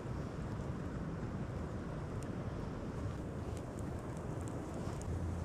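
Small twigs crackle and pop as they catch fire.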